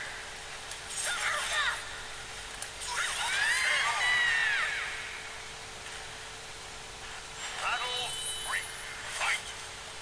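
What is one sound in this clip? A burst of magic whooshes loudly.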